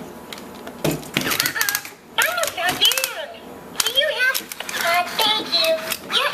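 Plastic toy parts click and rustle as hands handle them.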